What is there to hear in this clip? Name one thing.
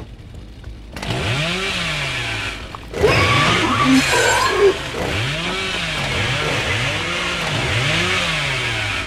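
A chainsaw revs loudly, its engine rising and falling in pitch.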